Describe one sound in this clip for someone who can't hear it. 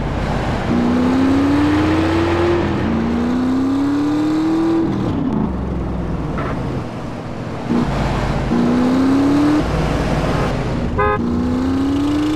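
A vehicle engine revs up again and again as it speeds along.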